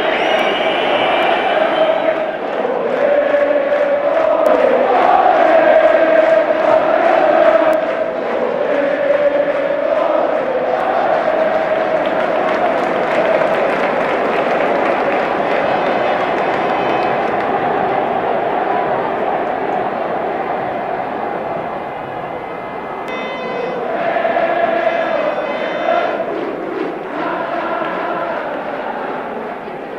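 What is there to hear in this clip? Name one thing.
A large stadium crowd roars and cheers throughout.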